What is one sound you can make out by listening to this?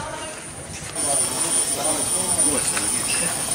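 Men and a woman chat nearby outdoors.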